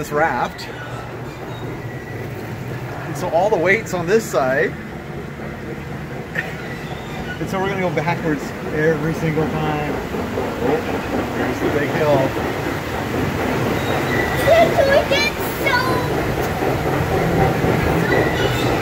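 A ride car rumbles along its track.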